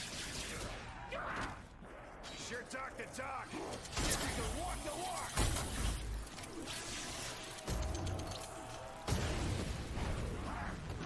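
Monsters growl and snarl.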